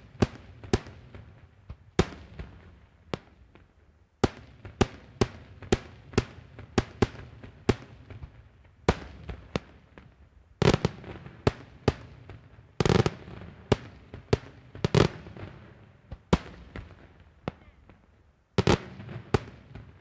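Fireworks bang loudly in the sky, one after another.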